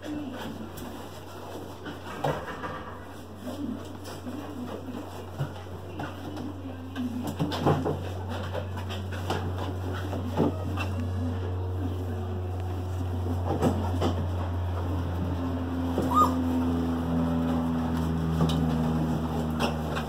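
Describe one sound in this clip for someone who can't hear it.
Puppies scuffle and patter softly across the floor.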